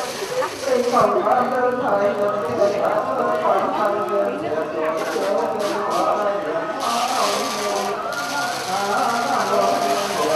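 A man chants loudly into a microphone.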